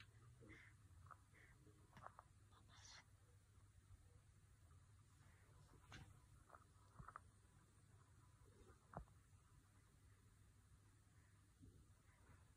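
A baby breathes softly in sleep.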